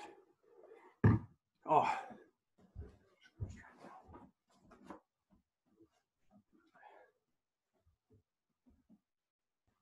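Bare feet thud on a wooden floor.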